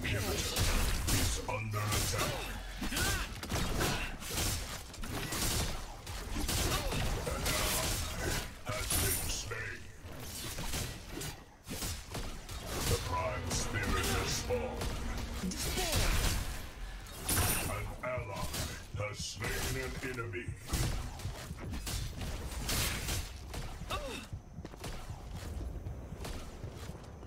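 Heavy blows thud and crash against armoured foes.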